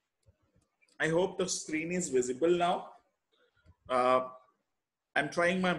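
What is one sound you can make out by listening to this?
A man lectures calmly through a microphone on an online call.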